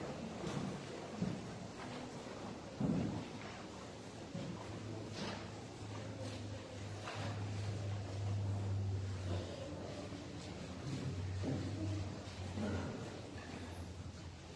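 Footsteps shuffle on a hard floor in a large echoing hall.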